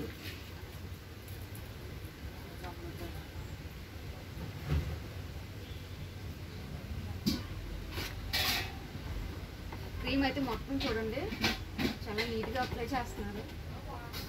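A knife spreads cream on a cake with soft scrapes.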